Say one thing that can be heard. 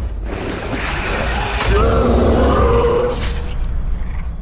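A huge beast roars with a deep, rumbling growl.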